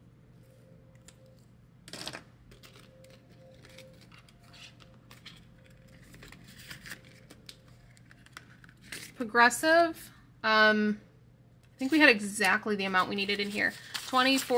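Paper bills rustle as hands handle them.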